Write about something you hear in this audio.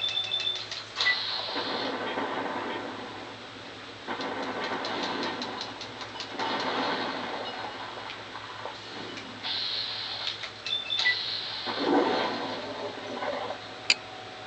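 Gunshots boom and echo in slow, drawn-out bursts.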